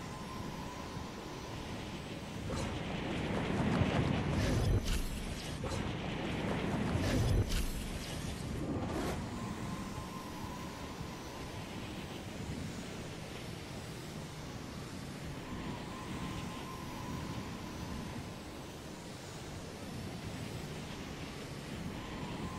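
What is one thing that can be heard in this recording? Wind rushes loudly during a fast glide, then settles to a steady whoosh.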